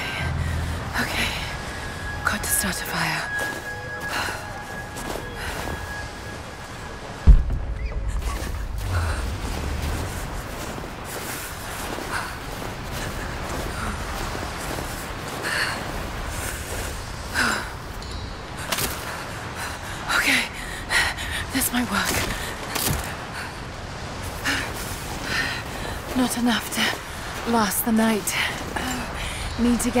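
Wind howls steadily outdoors in a snowstorm.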